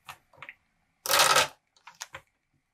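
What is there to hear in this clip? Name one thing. A metal corner cutter punches through card with a sharp crunch.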